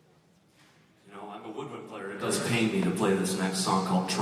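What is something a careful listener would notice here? A young man speaks with animation through a microphone in a large echoing hall.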